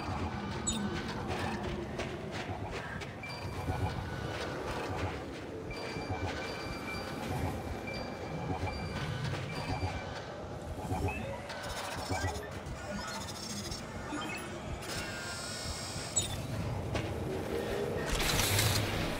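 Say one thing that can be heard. Heavy footsteps crunch on sand and snow.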